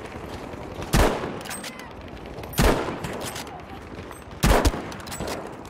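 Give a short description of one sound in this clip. A rifle fires sharp, loud shots.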